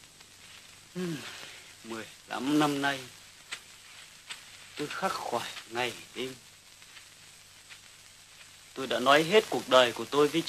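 Young men talk in low, urgent voices nearby.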